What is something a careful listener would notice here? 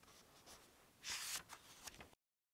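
Book pages rustle as a young woman turns them.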